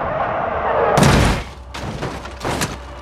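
A car crashes with loud metallic bangs and crunches.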